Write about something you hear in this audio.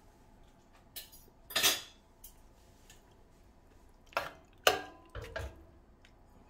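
A metal ladle clinks against a pot.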